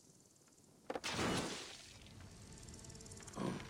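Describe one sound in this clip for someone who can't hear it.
An explosion bursts with a roar of flames.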